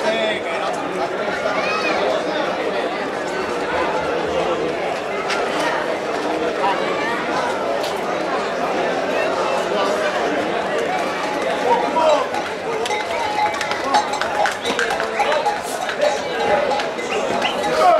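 Bulls' hooves clatter on the pavement.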